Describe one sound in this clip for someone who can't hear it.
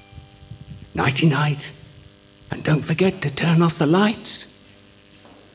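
A man speaks calmly into a microphone, echoing in a large hall.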